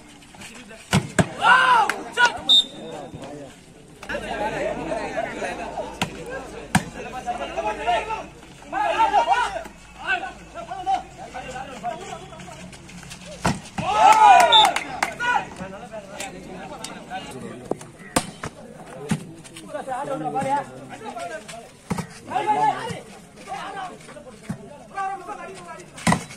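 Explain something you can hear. A volleyball is struck hard by hand.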